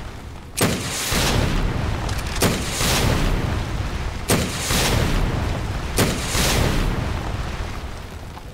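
A heavy gun fires loud booming shots that explode and rumble away.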